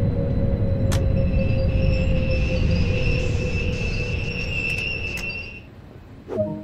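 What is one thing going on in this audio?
Train brakes squeal steadily.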